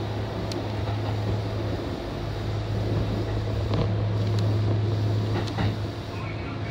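Wheels click and clatter over rail joints.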